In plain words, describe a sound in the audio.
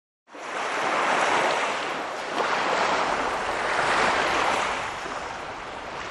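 Small waves wash and break softly onto a sandy shore.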